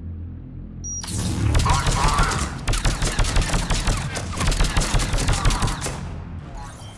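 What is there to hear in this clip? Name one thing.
Rapid gunfire rattles in bursts with sharp blasts.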